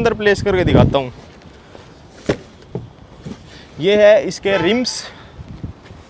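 Cardboard boxes thud and scrape as they are lifted.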